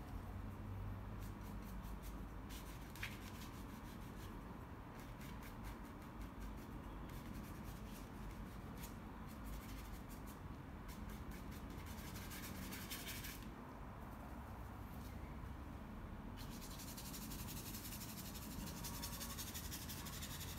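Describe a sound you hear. A brush scratches and swishes softly on paper.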